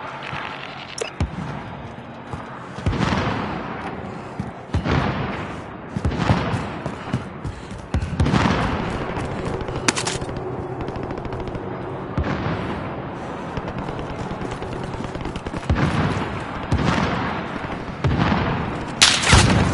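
Gunshots boom repeatedly in a video game.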